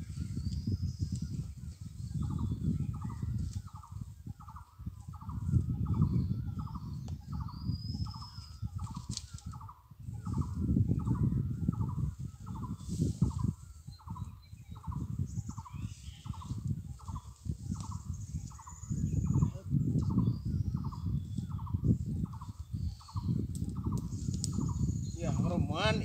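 Leaves and branches rustle as a man pushes through dense bushes.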